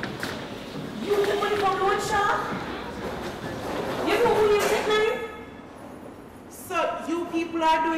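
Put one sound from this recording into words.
A young woman speaks close by with emotion, her voice rising and falling.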